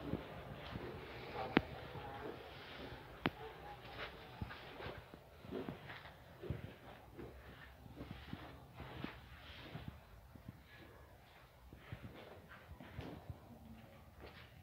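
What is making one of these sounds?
Footsteps scuff on a hard floor.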